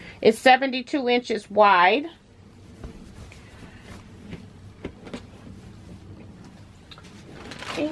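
Fabric rustles as it is moved and handled.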